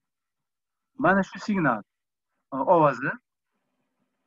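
An elderly man speaks calmly, heard through a recording.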